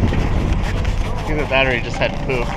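A bearded man talks loudly inside a car.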